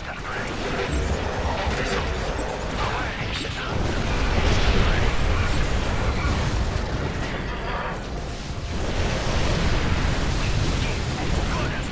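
Energy blasts boom and crackle.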